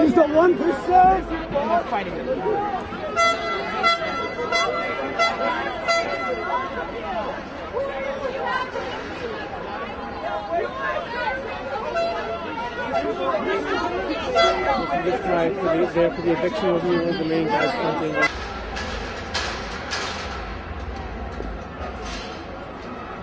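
A crowd shouts and chants loudly outdoors.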